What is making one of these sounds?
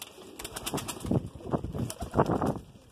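Wings flap and flutter briefly.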